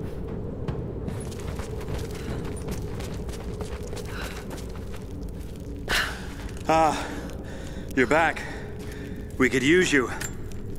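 Footsteps crunch softly on dirt and stone.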